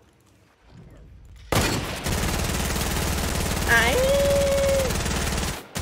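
A young man speaks into a headset microphone.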